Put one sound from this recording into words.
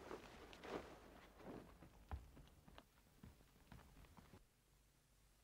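Bare feet patter quickly across a floor.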